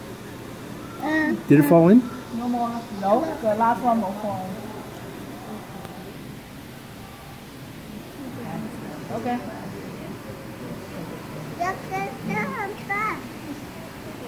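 A young girl talks with excitement close by.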